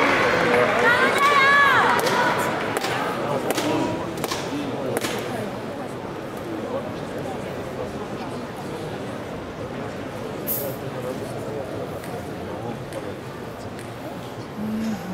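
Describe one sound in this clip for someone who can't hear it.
A large crowd cheers in a big echoing hall, then settles into a murmur.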